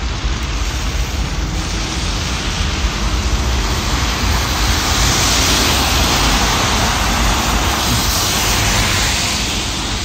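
A diesel city bus drives past.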